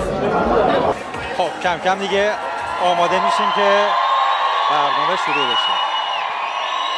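An audience cheers and screams in a large hall.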